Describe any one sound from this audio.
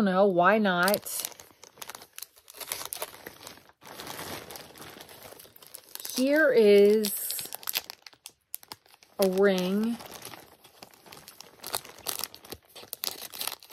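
A plastic bag crinkles and rustles.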